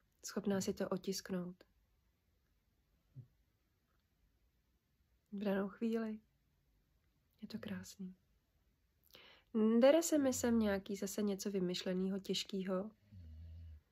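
A woman speaks calmly and close by, with pauses.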